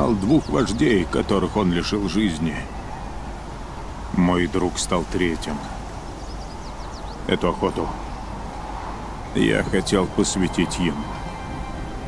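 An elderly man speaks slowly and gravely, with pauses.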